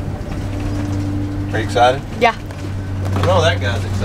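A girl talks and laughs nearby.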